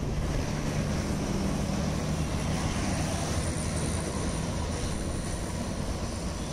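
A small engine hums as a van rolls past close by.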